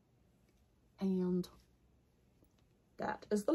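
A woman speaks close to the microphone.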